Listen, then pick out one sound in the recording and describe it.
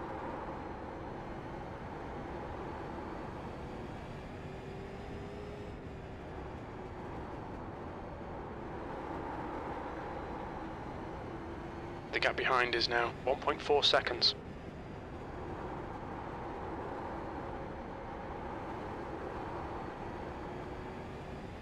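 A racing car engine drones steadily, rising and falling as the car laps the track.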